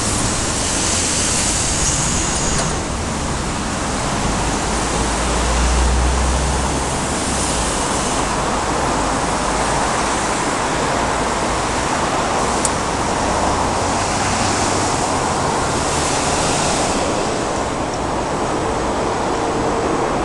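City traffic rumbles and hisses steadily on a wide road below.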